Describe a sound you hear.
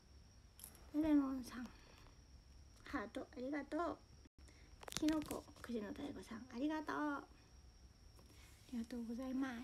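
A young woman talks casually and close to a phone microphone.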